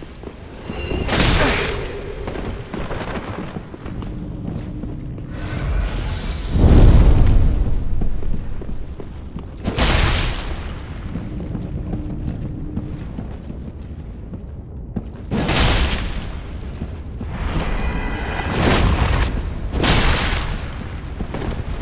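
Metal blades clash and clang.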